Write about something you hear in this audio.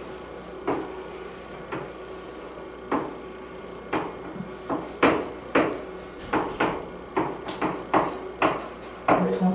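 A pen taps and squeaks on a board.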